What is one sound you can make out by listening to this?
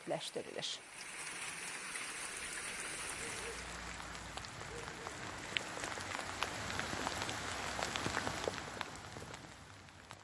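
Rain patters steadily outdoors.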